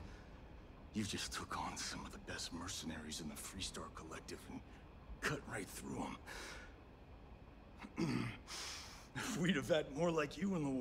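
A man speaks calmly and with wonder, close by.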